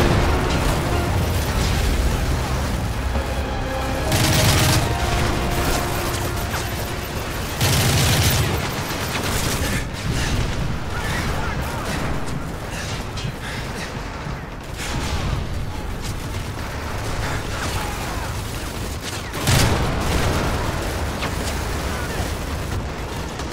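Rifle gunfire cracks in rapid bursts.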